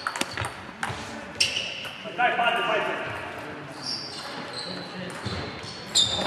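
Several men talk casually nearby in a large echoing hall.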